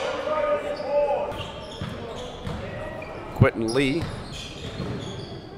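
A basketball bounces on the court with dull thuds.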